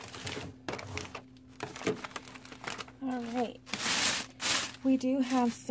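Clear plastic wrap crinkles and rustles.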